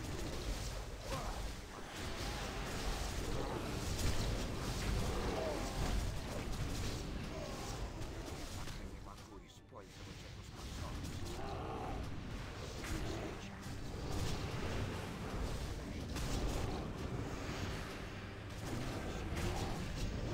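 Weapon strikes and magic blasts clash in a busy battle.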